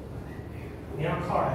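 A man speaks aloud.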